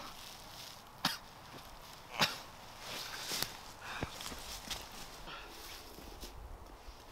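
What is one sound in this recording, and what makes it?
Leaves and twigs rustle underfoot.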